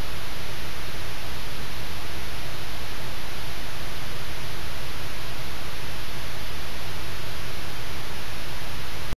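A spaceship engine roars with a steady hiss.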